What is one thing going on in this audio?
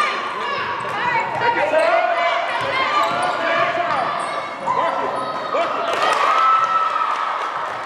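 Sneakers squeak sharply on a wooden floor in an echoing gym.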